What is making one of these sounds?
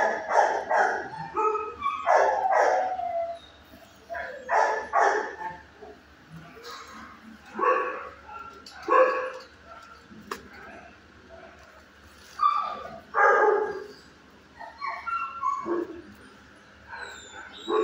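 A dog barks in short bursts that echo in a hard room.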